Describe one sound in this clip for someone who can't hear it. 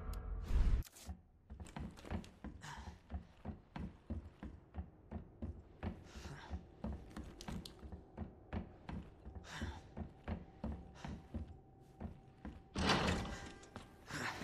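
Footsteps thud steadily on hard floors and stairs.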